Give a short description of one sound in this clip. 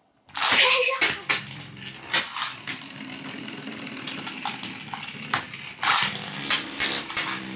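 Spinning tops clack as they collide.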